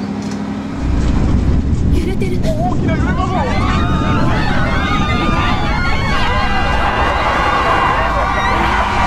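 A bus engine rumbles steadily inside the bus.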